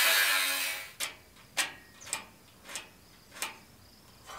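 A metal square taps against a steel frame several times.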